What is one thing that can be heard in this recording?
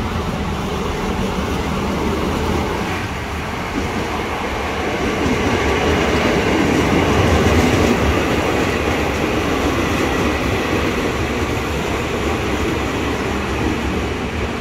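An electric train rumbles into a station and rolls past close by.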